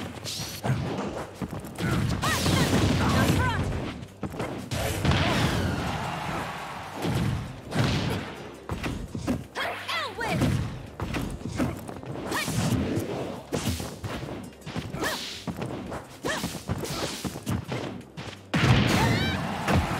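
Punches, slashes and blasts thud and crackle in a fast video game fight.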